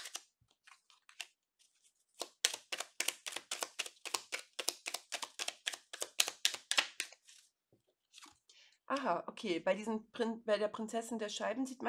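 Playing cards slide and tap softly onto a cloth-covered table.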